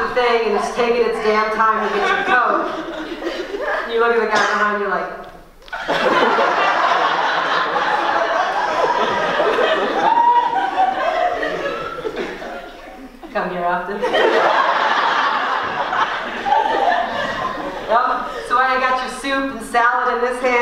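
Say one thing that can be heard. A young woman talks with animation through a microphone in an echoing hall.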